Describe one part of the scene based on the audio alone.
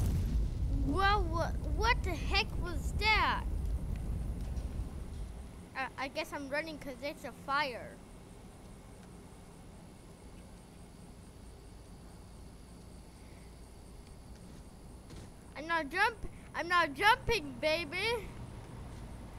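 A boy talks with animation into a close microphone.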